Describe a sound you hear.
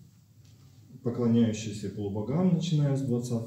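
A middle-aged man speaks calmly into a microphone, reading aloud.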